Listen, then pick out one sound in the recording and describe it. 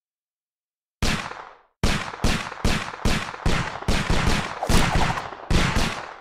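Gunshots fire rapidly, one after another.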